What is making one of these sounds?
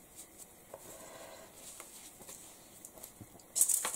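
A plastic stencil peels away with a soft crackle.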